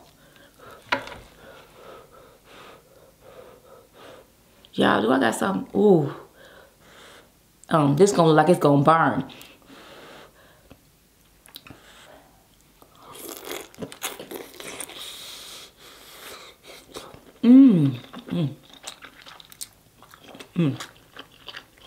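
Sauce squishes and drips as fingers handle food.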